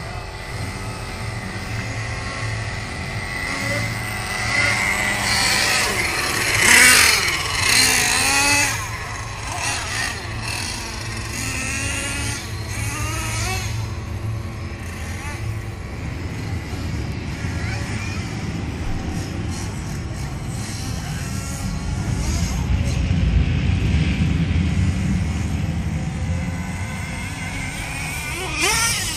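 Small engines buzz and whine as remote-control cars race over dirt.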